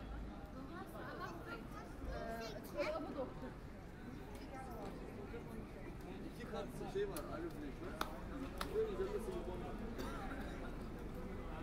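Men and women talk in passing on a busy pedestrian street outdoors.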